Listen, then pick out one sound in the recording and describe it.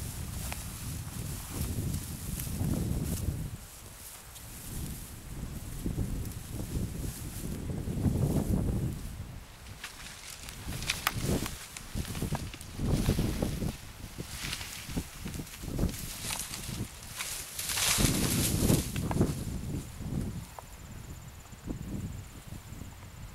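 Wind buffets a microphone outdoors in gusts.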